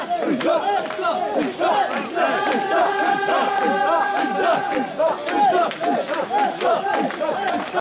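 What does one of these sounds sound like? A crowd of men chants loudly in rhythm close by.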